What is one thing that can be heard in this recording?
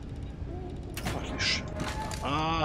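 A metal hatch slides open with a mechanical hiss and clunk.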